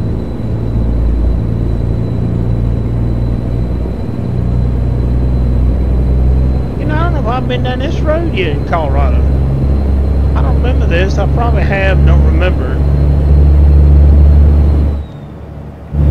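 A truck's diesel engine drones steadily at low pitch.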